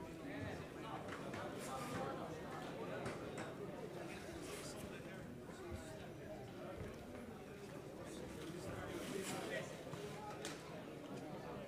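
A small crowd murmurs and calls out in a large echoing hall.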